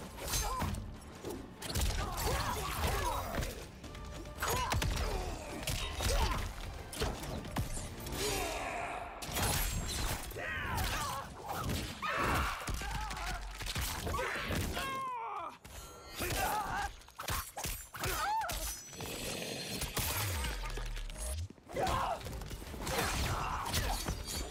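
A man grunts and yells in pain.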